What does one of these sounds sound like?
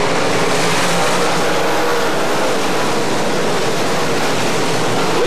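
Race car engines roar loudly as the cars speed around a track.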